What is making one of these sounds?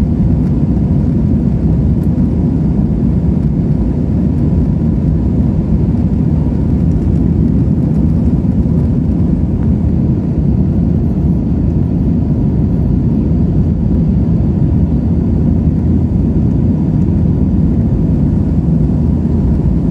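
Jet engines roar steadily and deeply throughout, heard from inside an airliner cabin.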